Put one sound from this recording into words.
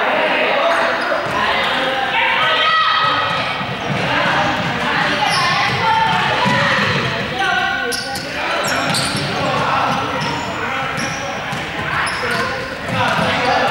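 Many young girls shout and chatter in a large echoing hall.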